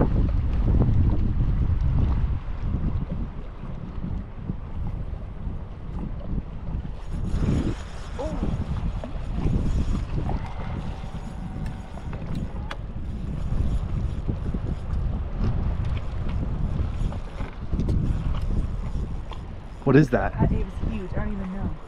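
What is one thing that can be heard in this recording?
Water laps against the side of a small boat.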